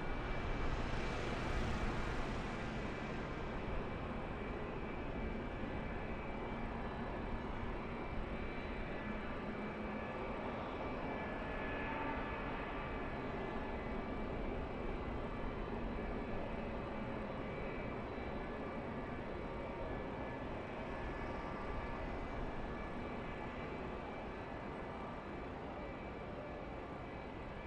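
Race truck engines drone steadily around a large speedway.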